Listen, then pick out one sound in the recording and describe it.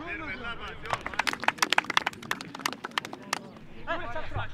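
Young men on a bench clap their hands.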